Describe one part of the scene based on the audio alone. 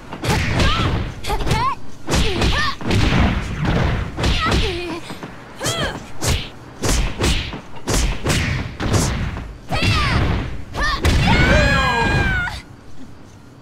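Punches and kicks land with heavy thuds in quick bursts.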